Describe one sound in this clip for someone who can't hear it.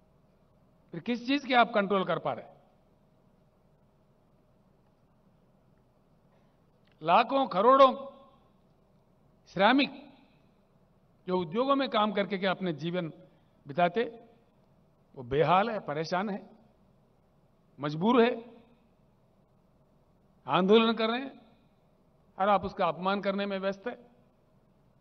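An elderly man speaks slowly and forcefully into a microphone, with pauses between phrases.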